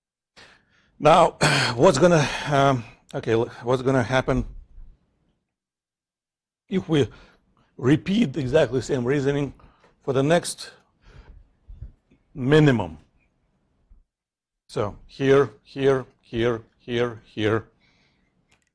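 A man lectures calmly through a microphone, speaking in bursts with pauses.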